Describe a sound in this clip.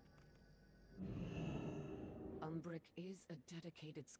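A magical whooshing swells and fades.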